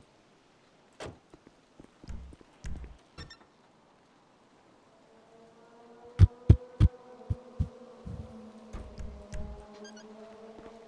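Footsteps thud on pavement.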